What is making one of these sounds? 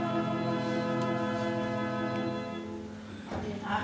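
A band holds a final chord that cuts off.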